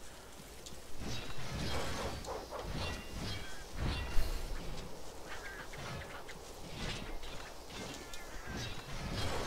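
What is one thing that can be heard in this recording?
A blade slashes and strikes a flying creature with sharp hits.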